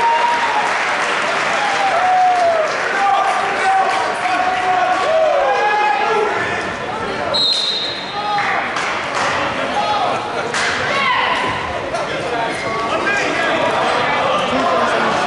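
A crowd chatters and shouts in a large echoing gym.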